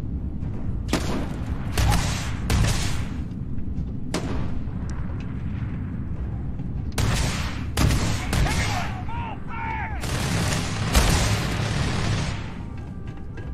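A gun fires loud shots in short bursts.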